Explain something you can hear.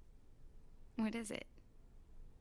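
A man speaks with surprise.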